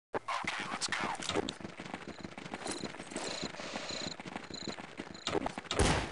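Footsteps run on hard ground.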